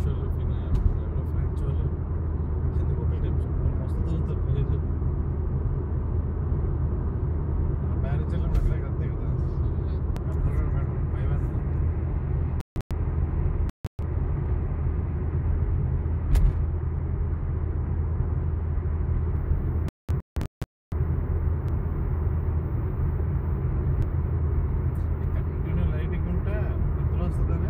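A car engine hums steadily inside an echoing tunnel.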